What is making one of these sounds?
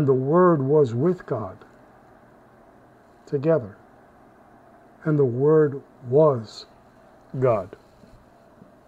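A middle-aged man speaks calmly in short phrases through an online call.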